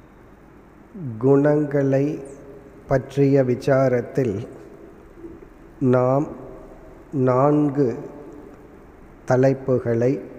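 A middle-aged man speaks with slow, drawn-out emphasis into a microphone over loudspeakers.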